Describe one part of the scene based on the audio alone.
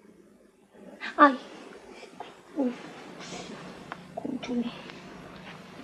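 A young woman gasps and sighs close by.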